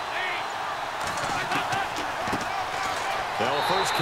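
Padded football players thud and crash together in a tackle.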